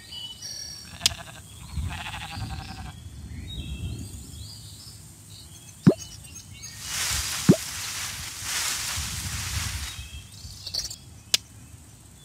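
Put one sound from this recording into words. Cheerful game sound effects chime and tinkle.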